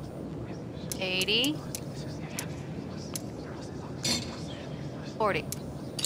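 A safe's combination dial clicks as it turns.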